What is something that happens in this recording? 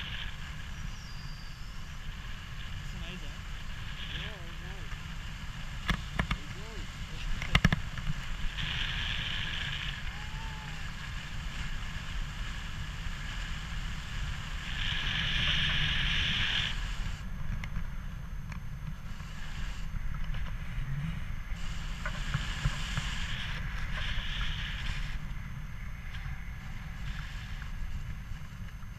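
Wind rushes steadily past a close microphone.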